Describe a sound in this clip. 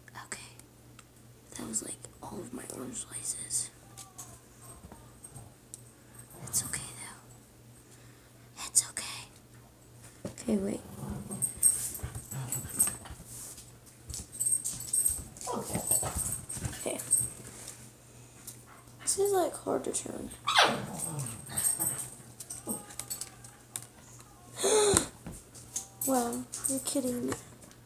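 Small plastic items click and rattle in a girl's hands.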